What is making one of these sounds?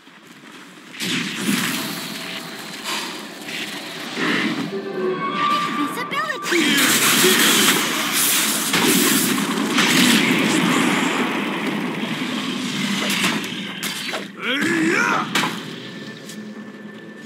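Spell effects crackle and blades clash in a fantasy battle.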